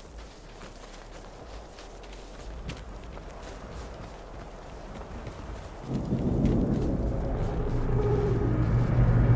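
Footsteps crunch over snow and dry ground.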